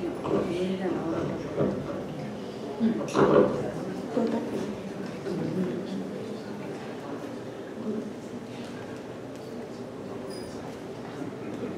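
A young boy speaks out loudly, as if acting a part, in an echoing room.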